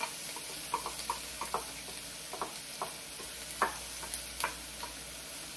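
A wooden spoon taps and scrapes in a pan.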